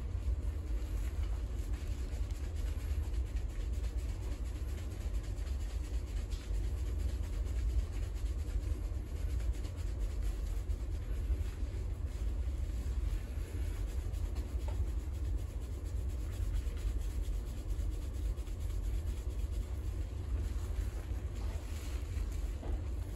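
Hands squish and rub foamy lather into wet hair.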